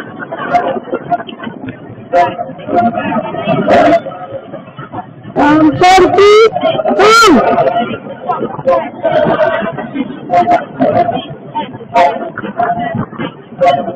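Young women chatter and shout close by, outdoors.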